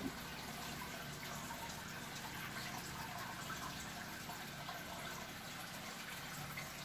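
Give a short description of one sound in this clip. Air bubbles stream and burble through aquarium water.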